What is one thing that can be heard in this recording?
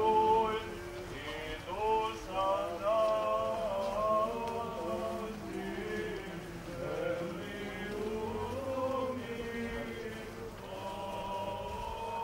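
A crowd of men and women sings slowly outdoors.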